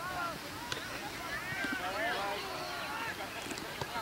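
A football is kicked and thumps on a grass field.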